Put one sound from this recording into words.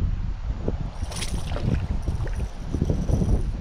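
A small fish splashes at the water's surface.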